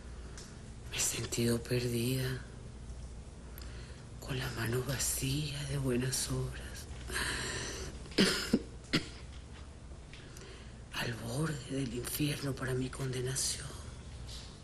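A woman speaks weakly and slowly, close by, with pauses.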